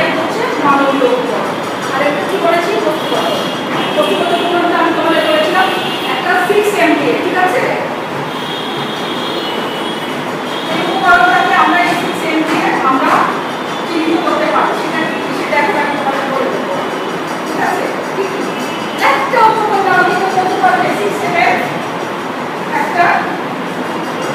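A woman speaks calmly and clearly, as if addressing a room.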